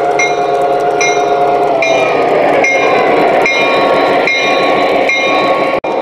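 A model locomotive rumbles close past.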